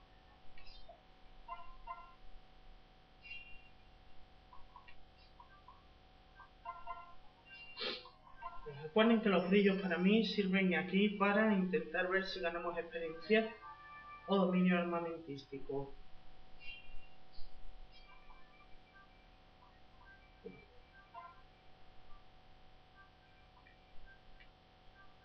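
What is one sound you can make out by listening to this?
Short electronic game beeps and chimes play from a small speaker.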